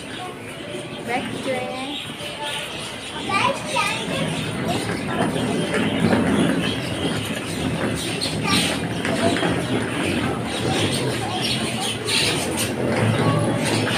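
A middle-aged woman talks with animation close to a microphone.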